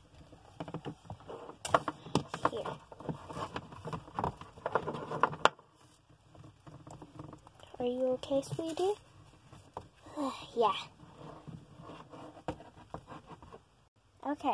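Small plastic dolls clack and rustle as hands handle them.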